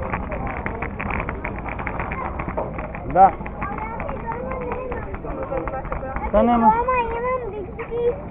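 Small scooter wheels rattle over paving stones.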